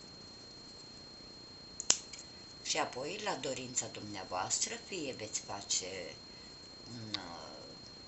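Scissors snip through thread.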